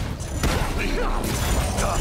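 Crates smash and splinter.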